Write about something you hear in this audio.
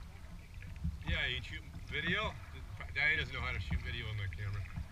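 A man calls out from a dock some distance away.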